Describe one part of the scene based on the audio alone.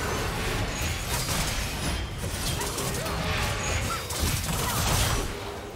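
Magic spells crackle and burst in a fast video game fight.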